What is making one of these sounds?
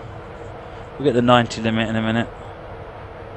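A man speaks briefly into a microphone.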